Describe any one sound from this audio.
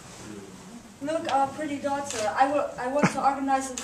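A young woman speaks clearly and with expression, close by in a room.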